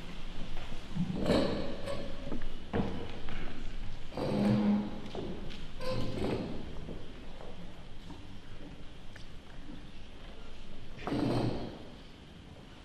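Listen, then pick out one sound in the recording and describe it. String players tune their instruments with short plucked and bowed notes.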